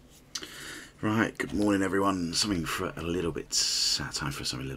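A man speaks clearly and firmly, close by.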